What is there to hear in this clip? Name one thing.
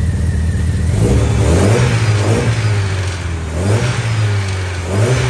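A car engine revs up and down several times.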